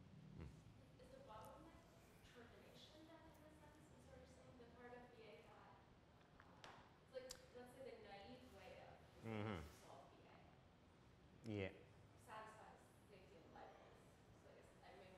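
A young woman asks questions calmly, further from the microphone.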